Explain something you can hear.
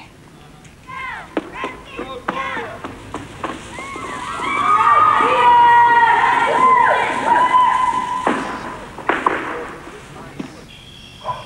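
A crowd of young people chatters and cheers in an echoing hall.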